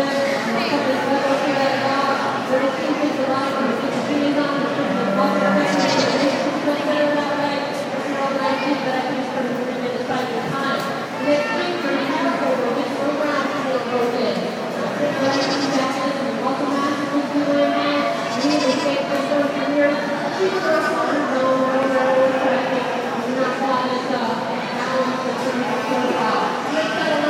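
A crowd talks and murmurs steadily in a large echoing hall.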